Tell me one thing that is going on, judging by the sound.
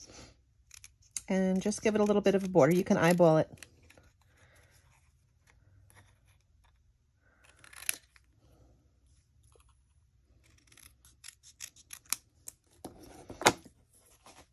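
Scissors snip through card.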